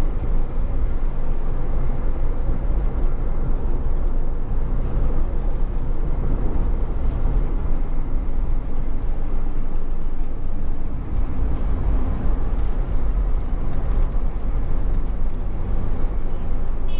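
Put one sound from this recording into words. A car's engine hums and its tyres roll steadily along a road.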